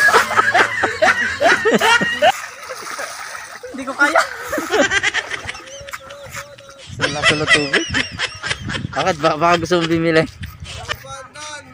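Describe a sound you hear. Water splashes in shallow water.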